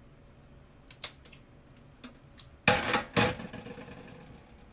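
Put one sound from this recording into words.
A metal spoon clinks and scrapes against a container.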